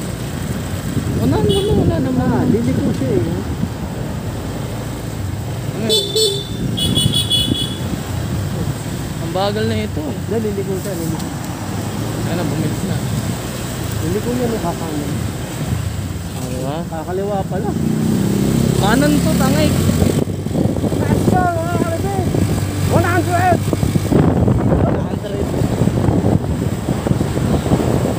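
A motorbike engine hums steadily at close range.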